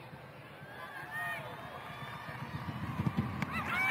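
A football is struck hard with a single thud.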